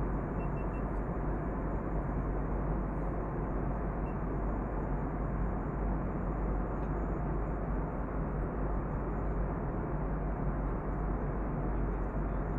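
A jet engine roars steadily in a low, constant rumble.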